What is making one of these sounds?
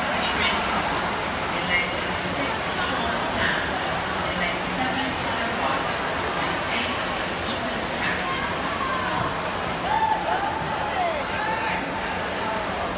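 Swimmers splash through the water.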